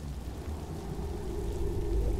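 A torch fire crackles softly.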